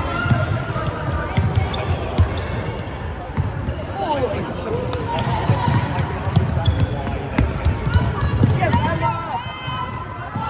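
A ball thuds and slaps against hands.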